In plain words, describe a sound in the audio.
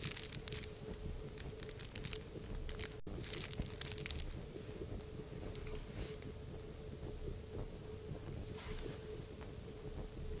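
Paper rustles softly in a man's hands.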